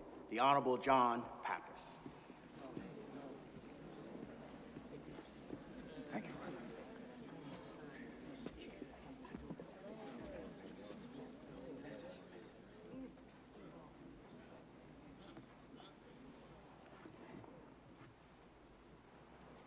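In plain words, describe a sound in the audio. A man speaks slowly and solemnly through a microphone, echoing in a large hall.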